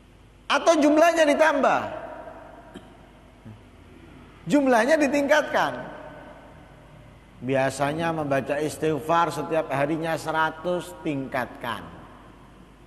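A man speaks calmly through a microphone, in bursts with pauses, in an echoing hall.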